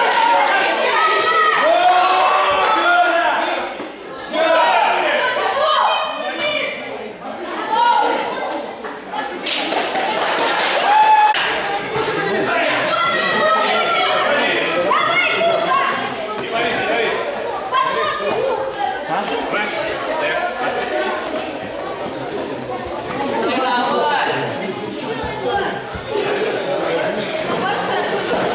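Feet thud and shuffle on a padded mat as fighters spar.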